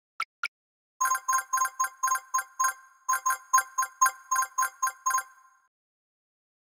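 Quick chiming tinkles ring out in a rapid run.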